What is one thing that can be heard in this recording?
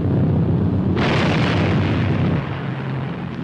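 Bombs explode with a roaring blast.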